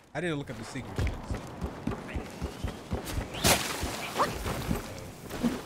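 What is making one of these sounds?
Footsteps thud on a wooden rope bridge.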